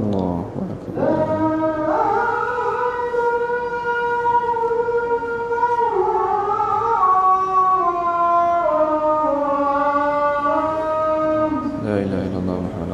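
A young man chants a long, drawn-out melody through a microphone.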